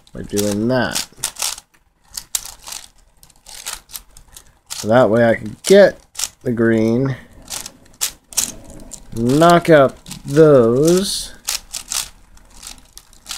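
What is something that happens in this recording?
A puzzle cube's plastic layers click and rattle as hands twist them quickly.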